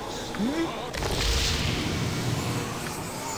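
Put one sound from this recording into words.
A fantasy game spell whooshes and rumbles as it is cast.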